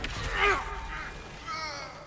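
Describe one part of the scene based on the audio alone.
Ice crystals crack and shatter.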